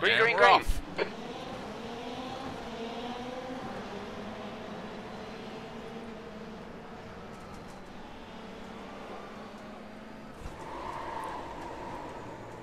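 Racing car engines roar and rev up as cars speed away.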